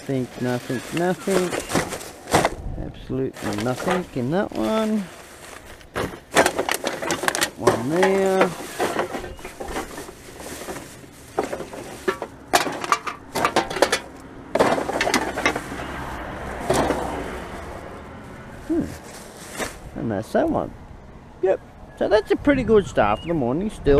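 A plastic bag rustles and crinkles in gloved hands.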